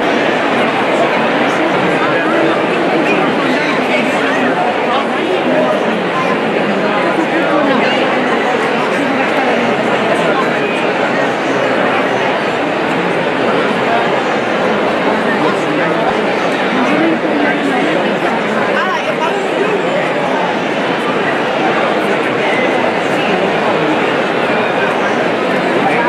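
A large crowd murmurs and chatters all around, loud and steady.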